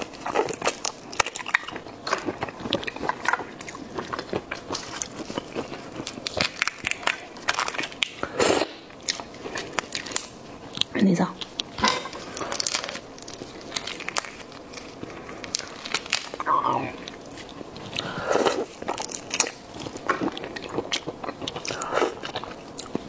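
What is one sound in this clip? A woman chews and slurps food close by.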